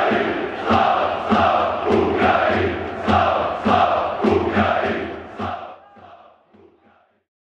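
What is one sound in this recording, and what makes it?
A large stadium crowd chants loudly in rhythm, echoing outdoors.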